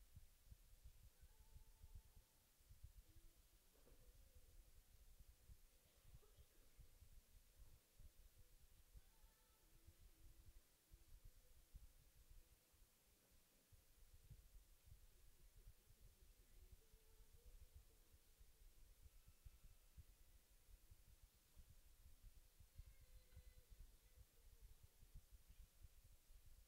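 Horses walk slowly on soft dirt.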